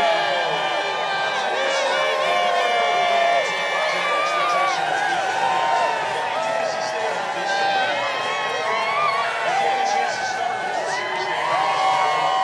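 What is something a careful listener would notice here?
A large crowd cheers and screams loudly in a big stadium.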